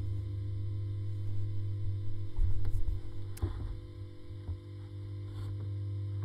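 A violin plays softly.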